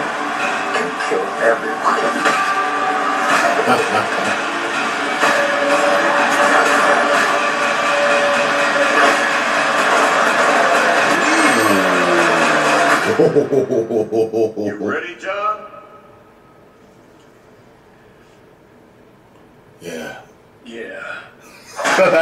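A man speaks and exclaims with animation close to the microphone.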